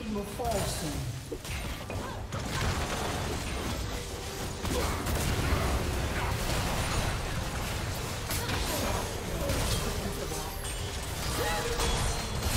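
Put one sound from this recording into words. Video game spell effects whoosh and burst repeatedly.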